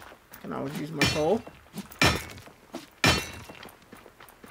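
A pickaxe strikes rock with sharp, ringing blows.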